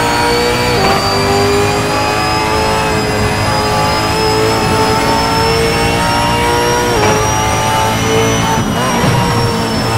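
A racing car engine roars at high revs, dropping sharply at each gear change.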